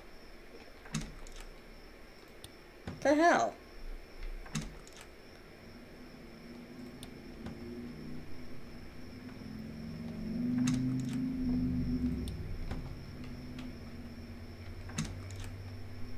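Soft interface clicks sound now and then as a game menu opens and closes.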